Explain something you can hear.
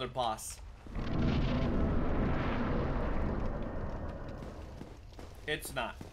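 A deep rushing whoosh swells and slowly fades.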